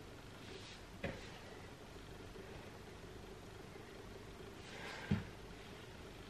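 A body thumps softly onto an exercise mat.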